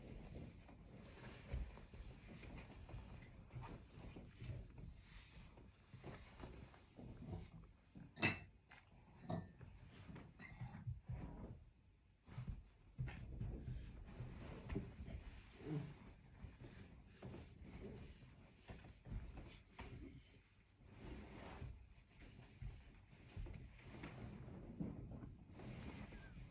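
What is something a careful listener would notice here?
Lion cubs scuffle and rustle against clothing.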